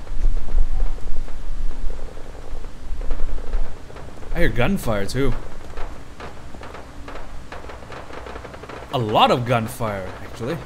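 Footsteps crunch over gravel and debris.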